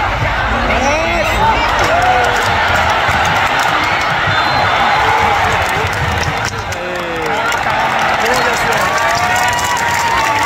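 Crowd members whistle and shout.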